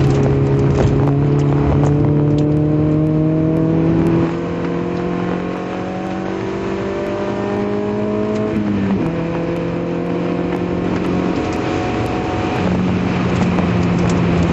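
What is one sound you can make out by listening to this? Raindrops tap lightly on the windscreen.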